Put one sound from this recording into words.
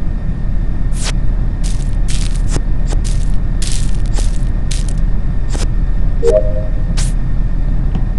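Short game sound effects whoosh as leaves are cleared.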